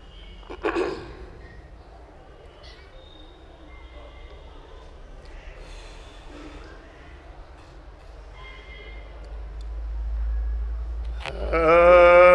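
A man recites softly into a microphone.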